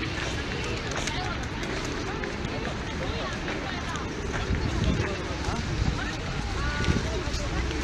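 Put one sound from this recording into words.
Many pigeons coo and flutter close by.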